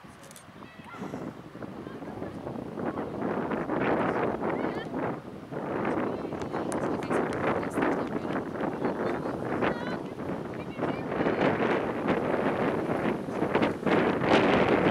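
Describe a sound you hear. Young girls shout to each other across an open field in the distance.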